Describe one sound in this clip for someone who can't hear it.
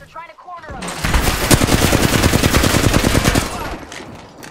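A rapid-fire gun shoots in a fast, loud burst.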